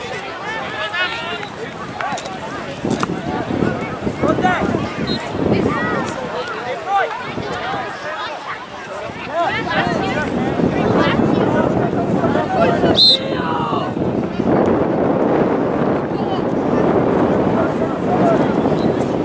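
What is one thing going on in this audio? Spectators and young players call out and shout across an open field.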